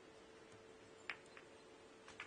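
A cue tip strikes a snooker ball with a sharp tap.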